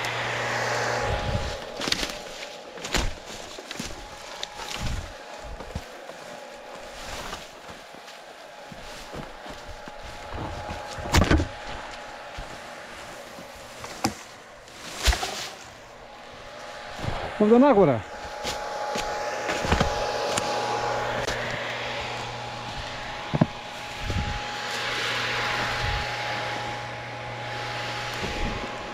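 Footsteps crunch through dry leaves and grass nearby.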